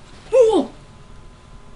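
A young woman cries out briefly.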